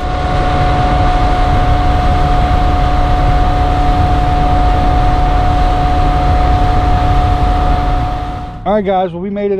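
An outboard motor drones loudly as a boat speeds over water.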